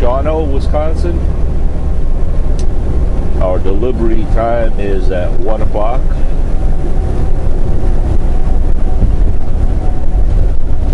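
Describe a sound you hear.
A truck engine rumbles steadily with road noise throughout.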